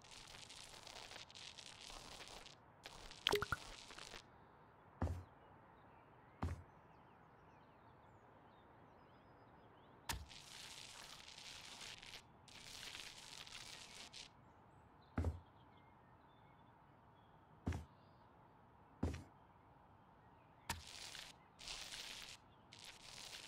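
A paint roller swishes against a wall in short bursts.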